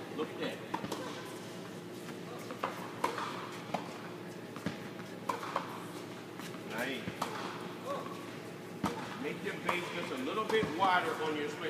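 Tennis balls bounce on a hard court.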